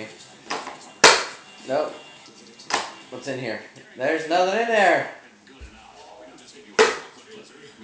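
A plastic ride-on toy clacks as it is handled.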